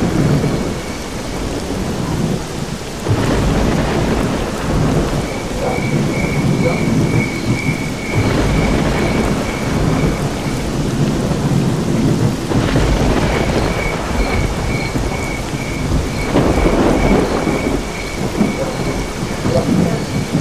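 Rain falls steadily through the trees outdoors.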